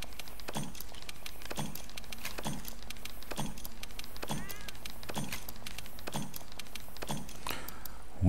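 Soft menu clicks tick at a steady pace.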